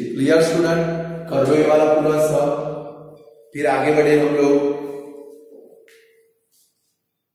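A man speaks clearly into a close microphone, explaining with animation.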